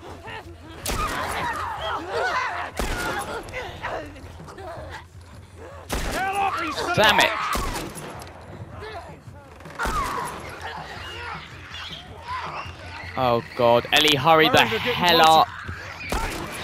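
Pistol shots ring out one at a time, loud and close.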